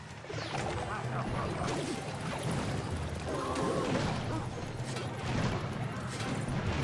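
Cartoonish battle effects clash, pop and thud in quick bursts.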